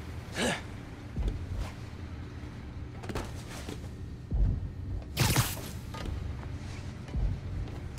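Heavy thuds sound as a figure jumps and lands on a metal floor.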